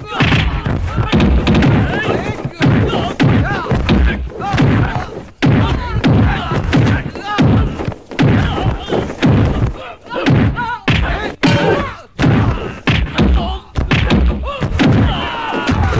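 Men shout and grunt loudly while fighting.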